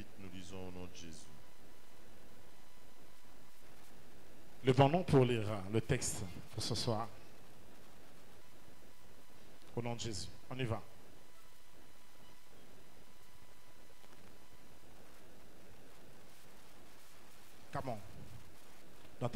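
A man speaks into a microphone over loudspeakers in a large echoing hall, in short bursts.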